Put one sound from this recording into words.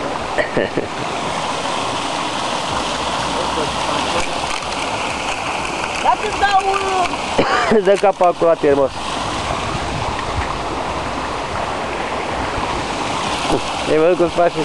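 Water splashes and gurgles steadily nearby, outdoors.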